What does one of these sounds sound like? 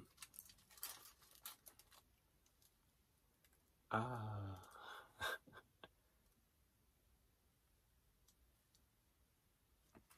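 A young man crunches on a chicken wing.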